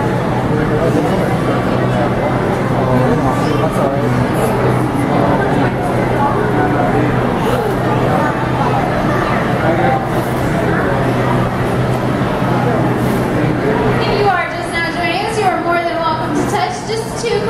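Many people chatter in an echoing indoor hall.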